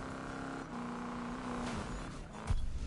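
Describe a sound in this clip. A car engine hums steadily at speed.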